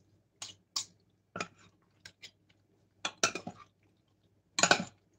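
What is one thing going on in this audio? Hands squish and slap wet food in a bowl in short bursts.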